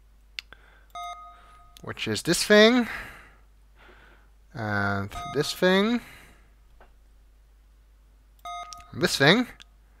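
A keypad beeps with short electronic tones as buttons are pressed.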